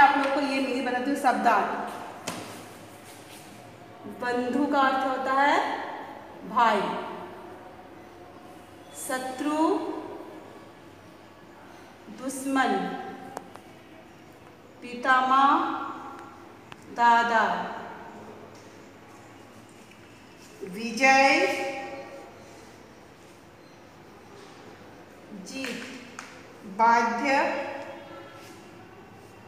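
A woman speaks slowly and clearly nearby, pausing between phrases.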